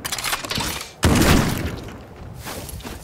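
A gun fires shots in quick bursts.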